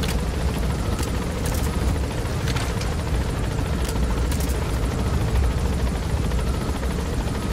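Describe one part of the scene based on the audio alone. A helicopter's rotor and engine roar steadily close by.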